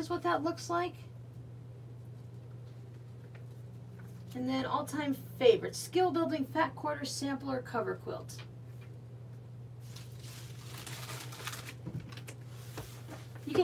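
Glossy magazines slide and rustle on a table.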